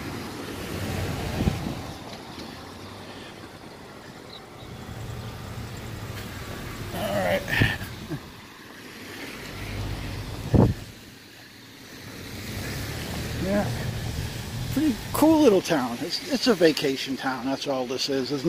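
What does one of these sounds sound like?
Traffic rumbles steadily in the distance.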